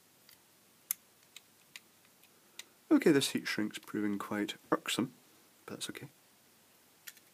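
Small metal parts click softly as a bulb is handled.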